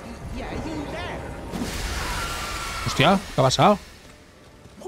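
A sword swings and strikes with a sharp clash.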